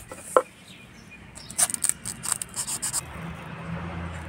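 A knife scrapes and cuts into a dry seed pod.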